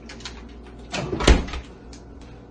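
A refrigerator door shuts with a thump.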